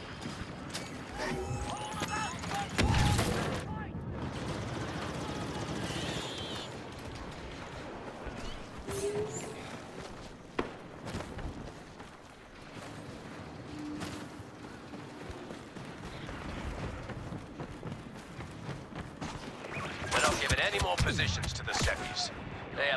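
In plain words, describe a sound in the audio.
Gunfire and blaster shots crack in bursts.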